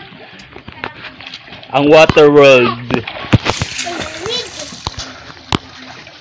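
Water splashes as a man swims nearby.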